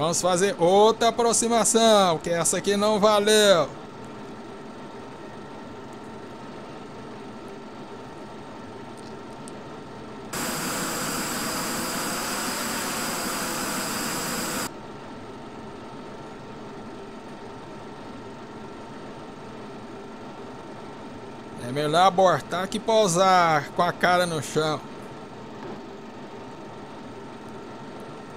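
A jet engine hums steadily.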